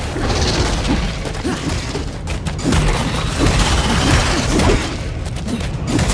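A large creature growls and roars.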